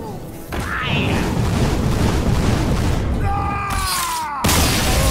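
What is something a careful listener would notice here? A fiery magical blast bursts and crackles.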